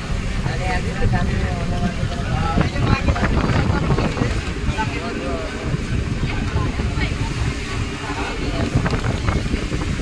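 A crowd of young men shout and cheer excitedly nearby.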